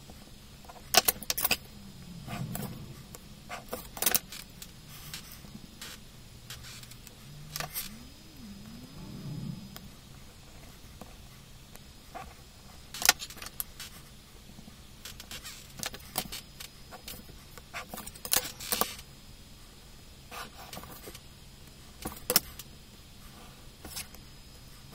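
A plastic set square clicks and taps against a desk.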